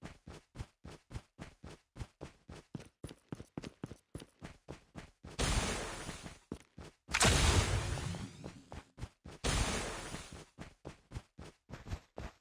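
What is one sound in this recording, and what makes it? Footsteps tread quickly and evenly through grass.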